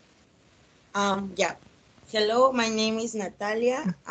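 A young woman speaks through an online call.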